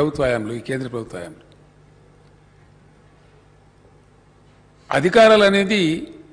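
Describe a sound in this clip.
An older man speaks firmly into a microphone, pausing between phrases.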